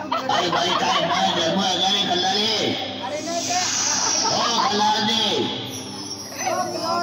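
Young men talk and laugh loudly close by.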